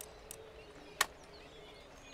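A single sharp interface click sounds.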